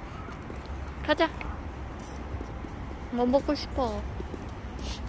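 A young girl speaks close by in a high voice.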